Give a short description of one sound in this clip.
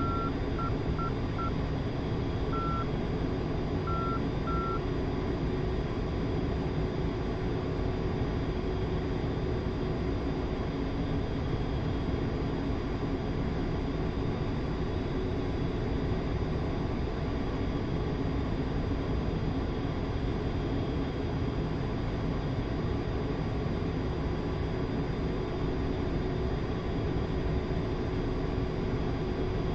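Jet engines roar steadily from inside a cockpit.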